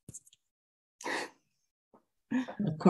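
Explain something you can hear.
A middle-aged woman laughs softly.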